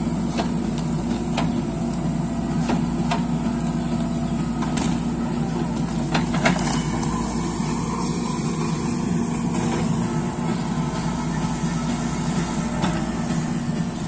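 A diesel engine of a backhoe loader rumbles steadily close by.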